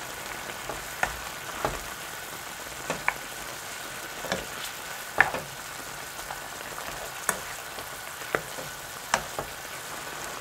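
A wooden spoon knocks and scrapes against a pot while stirring.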